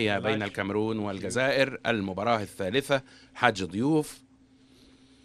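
A man announces through a microphone.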